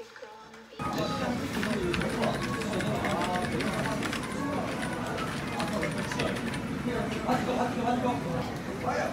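Keyboard keys clatter rapidly.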